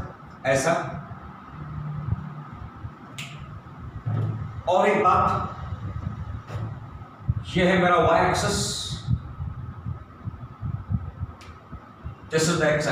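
A middle-aged man speaks in a lecturing tone nearby.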